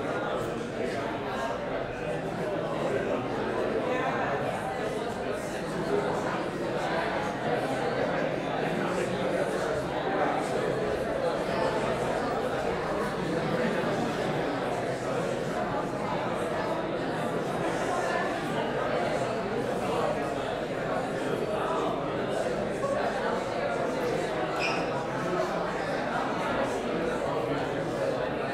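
A crowd of people murmurs and chatters quietly in a large echoing hall.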